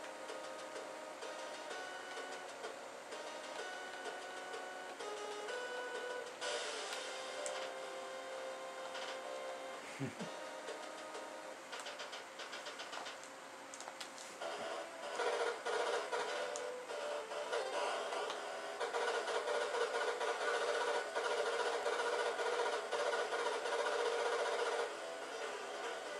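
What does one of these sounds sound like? Electronic game music plays in quick chiptune notes.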